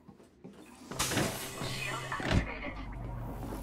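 A heavy sliding door whooshes open.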